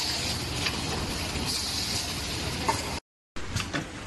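A machine hums steadily.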